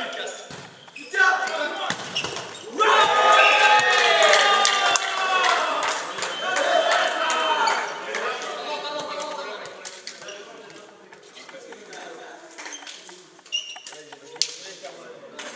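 A volleyball thumps off hands and bounces on the floor.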